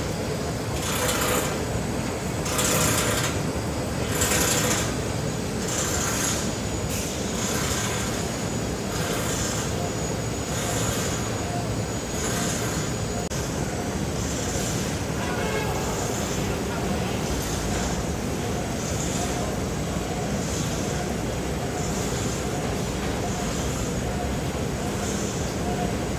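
A large machine hums and rumbles steadily in a large echoing hall.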